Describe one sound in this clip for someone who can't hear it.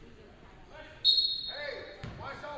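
A referee's whistle blows once, sharp and shrill.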